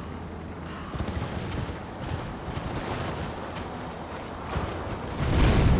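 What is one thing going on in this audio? A horse gallops over grass.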